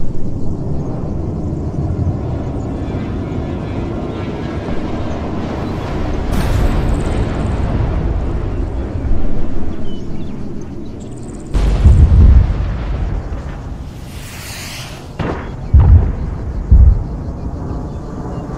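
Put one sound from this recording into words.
Jet engines roar overhead and rumble steadily.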